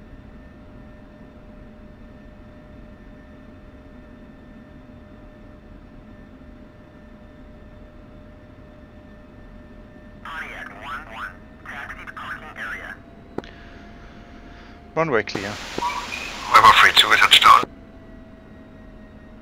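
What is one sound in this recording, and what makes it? A jet engine hums with a steady whine.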